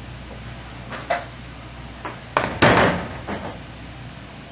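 Bowls clatter on a metal counter.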